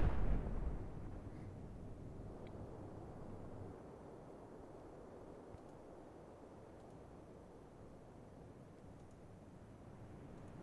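Rough seas surge and crash all around.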